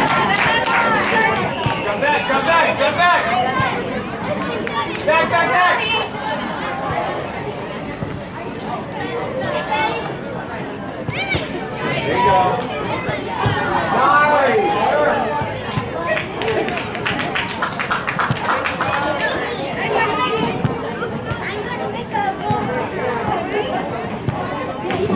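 Men and women nearby shout and cheer excitedly outdoors.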